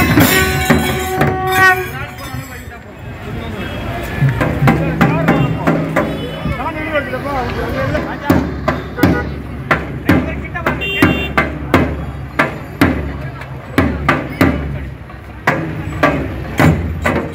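Large drums beat loudly in a steady rhythm outdoors.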